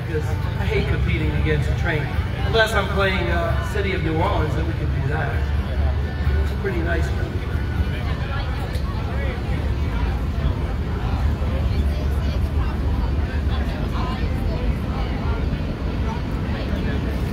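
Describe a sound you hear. Wind blusters steadily across a microphone.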